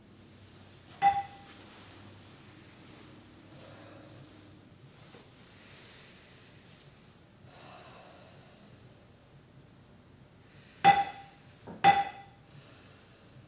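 A small bell rings out clearly and its tone lingers briefly.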